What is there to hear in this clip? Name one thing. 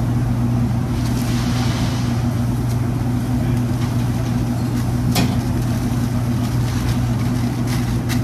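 Foil wrapping paper rustles and crinkles.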